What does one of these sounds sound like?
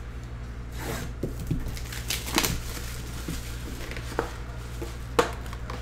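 Plastic wrap crinkles as hands handle it.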